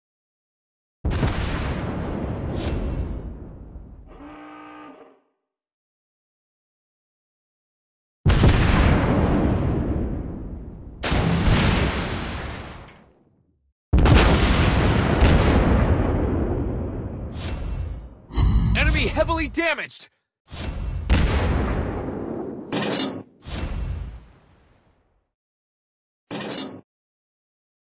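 Heavy guns fire in loud booming blasts that rumble away.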